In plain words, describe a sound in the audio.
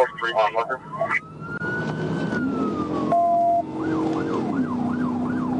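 A siren wails, rising and falling.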